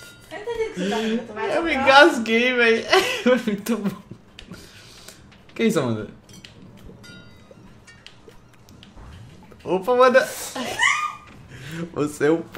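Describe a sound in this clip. A young man laughs close to a microphone.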